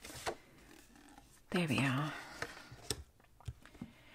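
A card slides and taps onto a table.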